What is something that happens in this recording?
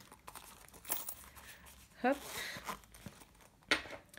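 A coin purse rustles as it is opened.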